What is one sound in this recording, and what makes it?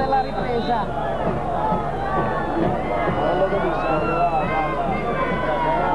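A large stadium crowd sings and chants loudly in the distance.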